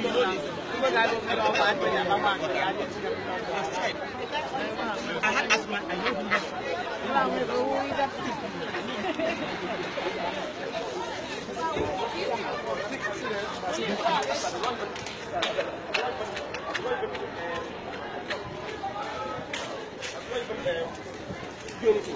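Several people talk loudly and excitedly nearby.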